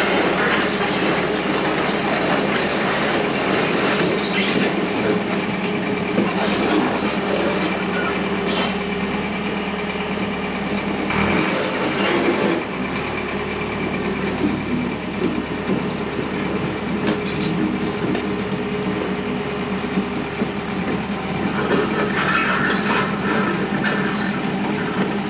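Steam hisses loudly from a vent.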